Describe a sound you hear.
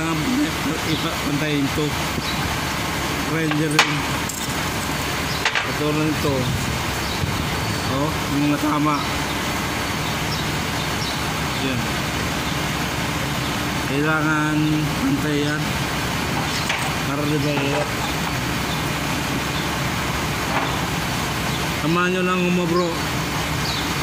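A man talks close by, calmly, in short phrases.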